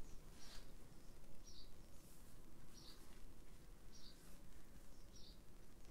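A paintbrush dabs softly on canvas.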